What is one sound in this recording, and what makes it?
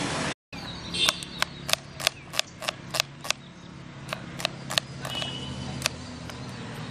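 A knife chops onion on a board with sharp taps.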